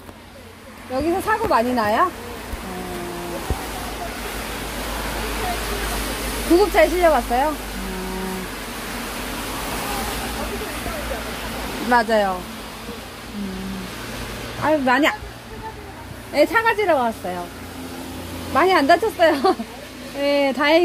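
A young woman speaks animatedly up close, in short bursts.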